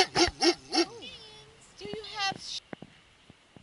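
A dog whines in a high, wavering voice.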